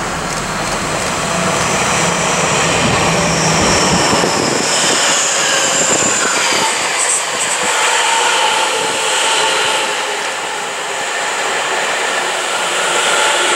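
A train's motor whines, rising and falling in pitch.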